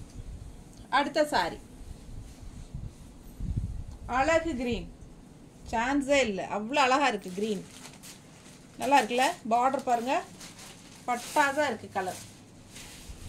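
A middle-aged woman speaks calmly and close by, in short phrases.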